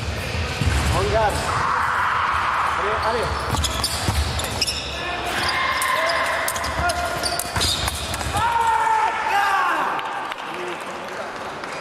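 Fencers' feet stamp and shuffle on a hard floor in a large echoing hall.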